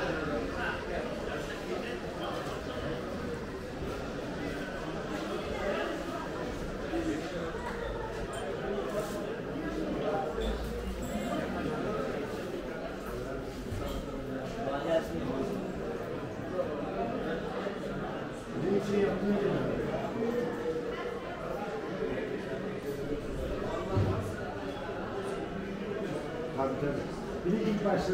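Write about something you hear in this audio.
A crowd murmurs and chatters in a large, echoing hall.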